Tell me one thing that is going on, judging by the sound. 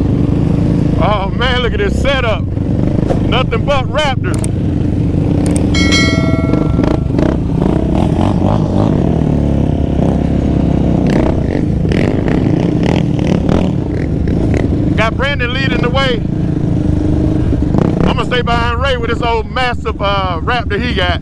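Quad bike engines rev up and down in quick bursts.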